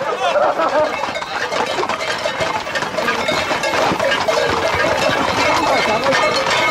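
Horses' hooves clatter on a paved road.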